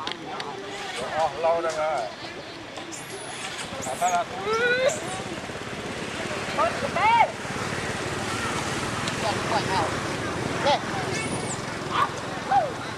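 A baby monkey squeaks and squeals in short bursts.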